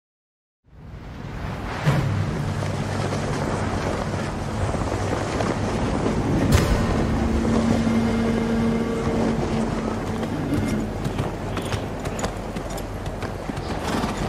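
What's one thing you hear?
Cloth banners flap and snap in a strong wind.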